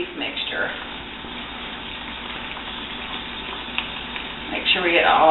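A spoon scrapes and stirs in a dish.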